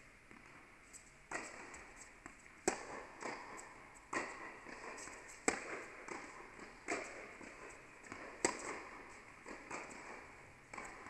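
Tennis shoes squeak on the court.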